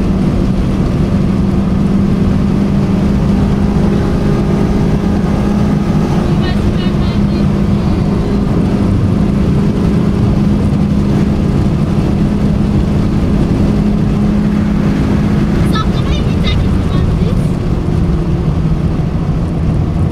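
A car engine hums steadily from inside the cabin while driving on a highway.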